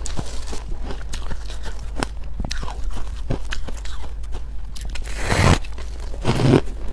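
A young woman chews and smacks her lips close to a microphone.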